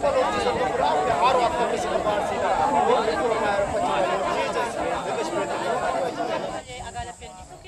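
A crowd of elderly women and men sing or chant together outdoors.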